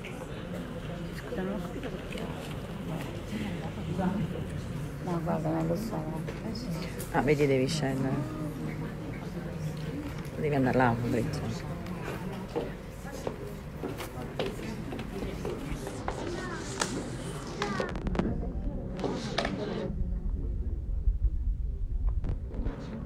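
A crowd of people murmurs and talks in the room.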